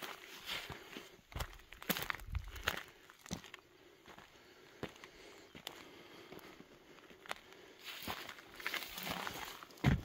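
Footsteps crunch on dry, stony ground outdoors.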